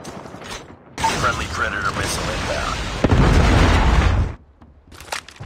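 A missile roars down and explodes with a loud boom.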